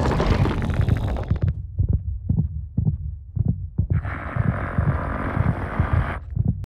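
A monstrous creature lets out a rasping roar.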